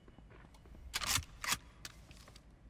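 A gun is drawn with sharp metallic clicks.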